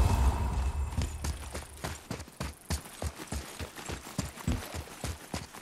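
Oars splash rhythmically in water as a boat is rowed.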